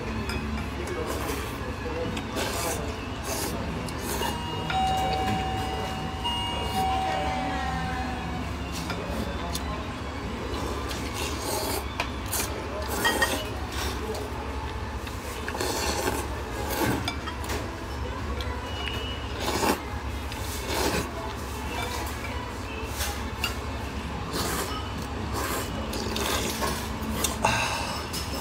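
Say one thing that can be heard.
Two men slurp ramen noodles.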